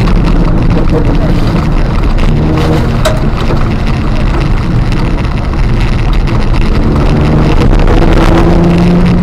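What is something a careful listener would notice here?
A car engine roars loudly, revving up and down.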